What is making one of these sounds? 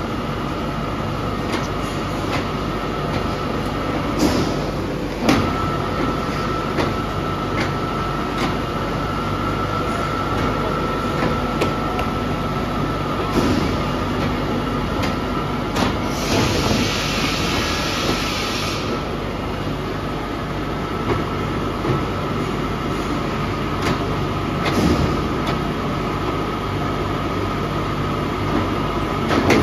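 A roller machine hums and rumbles steadily.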